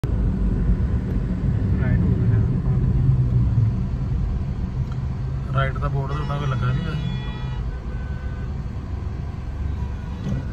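A car engine hums steadily as traffic rolls slowly along a road.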